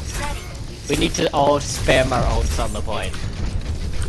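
A video game beam weapon sprays with a hissing rush.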